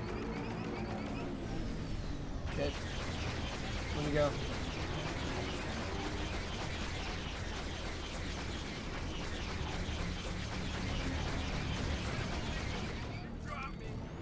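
Spaceship engines roar steadily.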